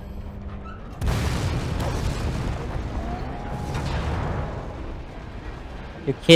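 A loud explosion roars and rumbles away.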